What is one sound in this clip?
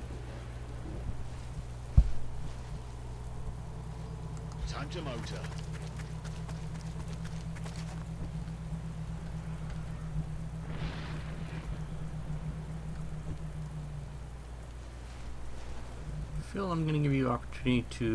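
Flames crackle softly.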